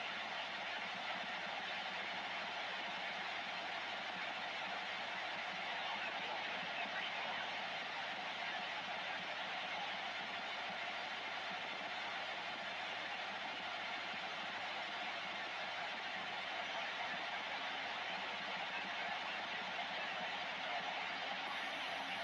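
Radio static hisses steadily from a loudspeaker.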